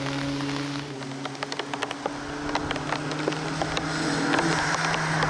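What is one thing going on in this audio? A car's exhaust pops and crackles as it approaches.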